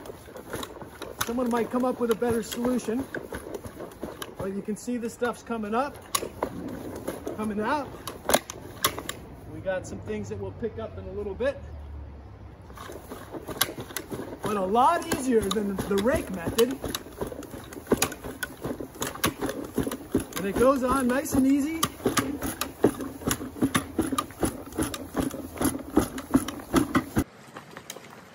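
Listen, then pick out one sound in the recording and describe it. A push spreader rattles as it rolls over grass.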